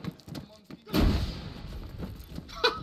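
A grenade bursts with a loud bang.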